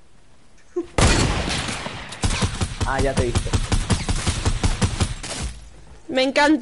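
A rifle fires a rapid burst of muffled shots.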